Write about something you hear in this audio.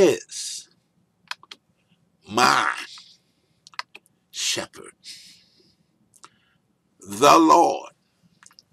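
A man speaks slowly and deliberately into a microphone, with pauses between words.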